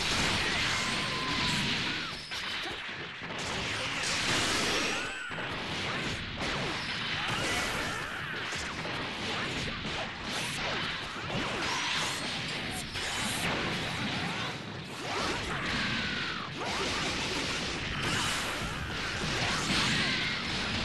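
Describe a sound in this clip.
Punches and kicks land with heavy impacts in rapid bursts.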